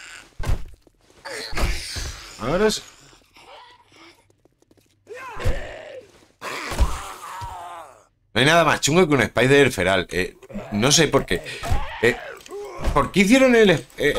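A spiked club thuds into a body.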